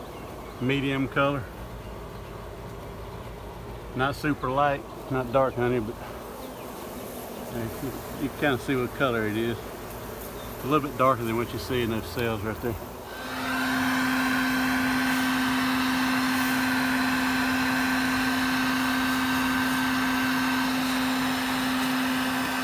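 Honeybees buzz in a dense swarm.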